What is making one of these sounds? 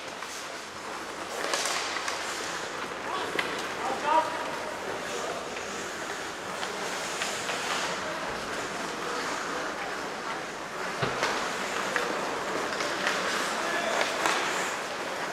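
Hockey sticks clack against a puck and against each other.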